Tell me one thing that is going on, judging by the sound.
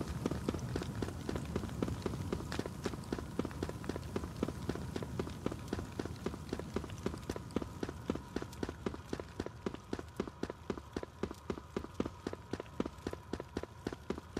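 Quick footsteps run steadily over hard ground.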